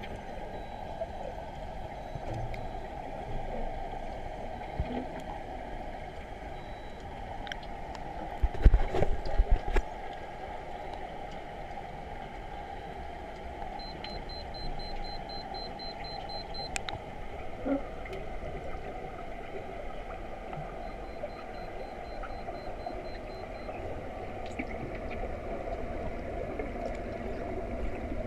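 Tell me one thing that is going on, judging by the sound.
Water rushes and rumbles in a steady, muffled hum underwater.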